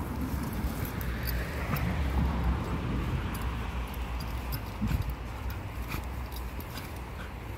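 Dogs dig and scratch in loose soil.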